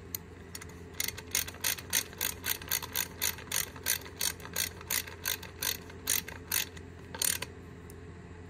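A ratchet wrench clicks rapidly as it turns a fitting.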